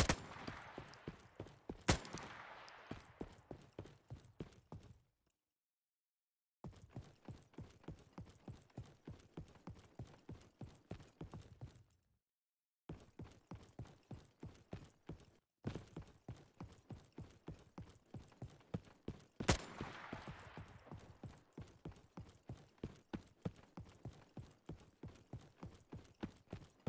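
Footsteps thud quickly and steadily on dirt.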